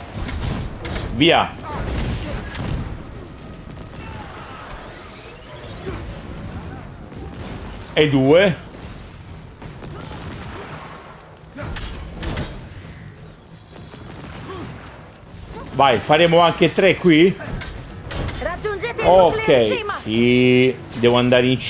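Energy weapons fire in quick bursts of zapping blasts.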